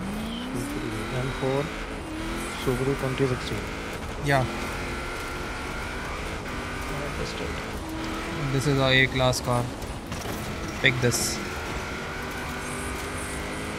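A car engine revs and roars steadily as a rally car speeds along.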